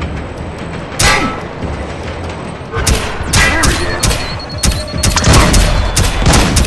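Gunshots bang in quick bursts, close by.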